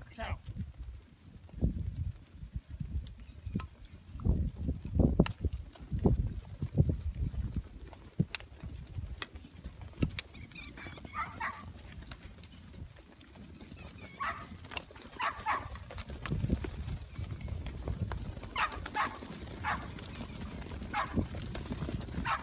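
Many hooves shuffle and patter on dry dirt.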